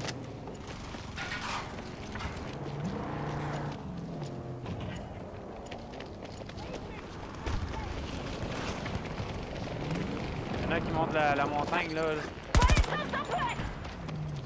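Footsteps tread on a hard rooftop.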